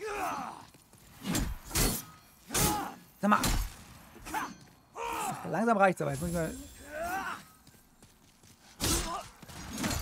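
A sword clashes and strikes with sharp blows.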